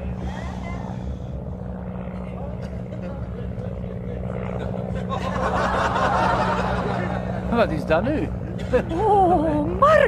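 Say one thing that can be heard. A small propeller plane drones steadily overhead.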